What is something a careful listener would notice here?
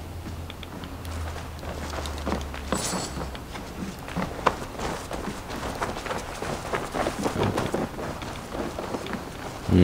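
Fire crackles softly nearby.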